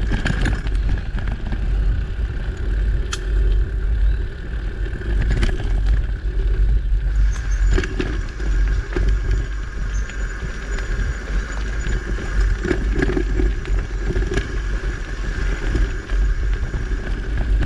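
Small stones knock now and then under the tyres.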